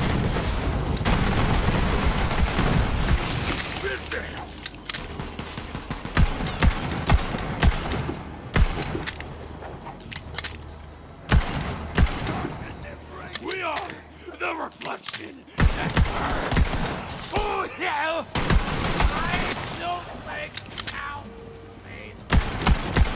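Guns fire in sharp bursts of shots.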